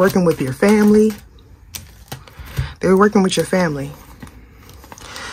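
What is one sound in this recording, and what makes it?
Playing cards rustle and slap softly as hands handle them.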